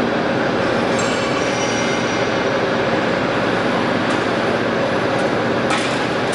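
A metal sheet clanks as it is handled.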